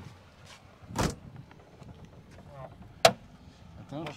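A car hood latch clicks.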